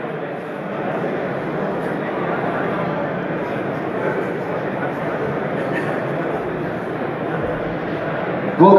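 A young man speaks into a microphone over loudspeakers in a large echoing hall.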